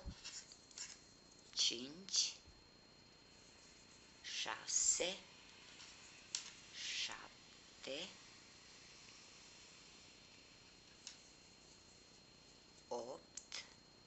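Yarn rustles softly as a crochet hook works it through stitches.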